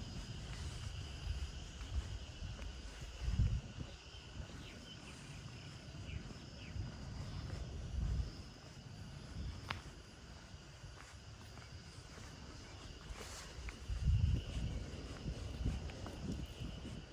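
Wind blows outdoors in gusts, rustling the leaves of trees.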